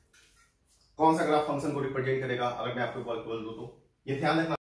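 A man speaks loudly and clearly, as if explaining to a class.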